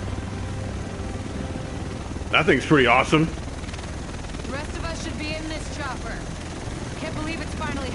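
An aircraft's rotors roar and thump overhead.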